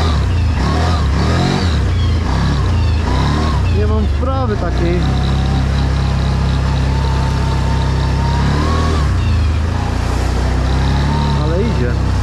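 Tyres roll through mud and puddles on a dirt track.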